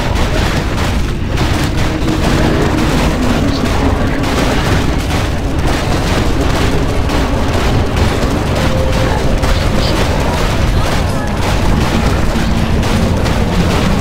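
Magic spells crackle and boom in a battle.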